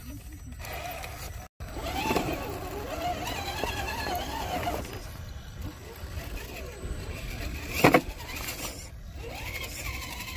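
Rubber tyres scrape and grip on rough rock.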